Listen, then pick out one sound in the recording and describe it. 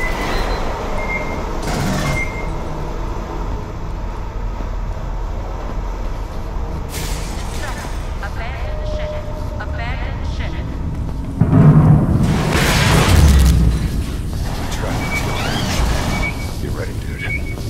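A motion tracker beeps with short high pings.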